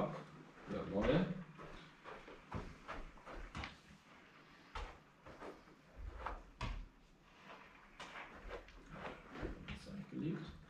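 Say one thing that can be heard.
A ball is kicked and bounces on a carpeted floor with soft thuds.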